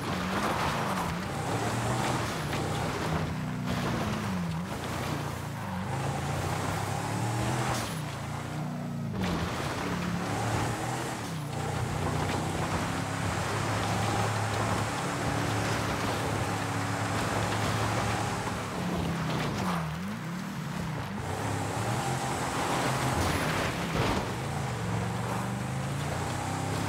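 Tyres crunch over a gravel dirt track.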